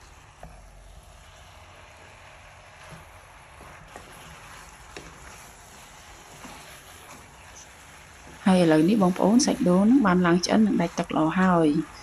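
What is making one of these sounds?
A wooden spatula scrapes and stirs food in a pan.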